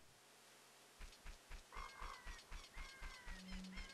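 Footsteps thud along at a steady, quick pace.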